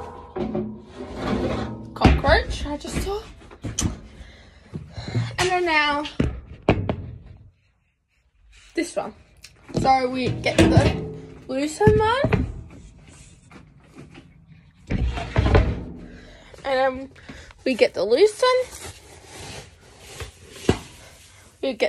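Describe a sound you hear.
A teenage girl talks casually and close by.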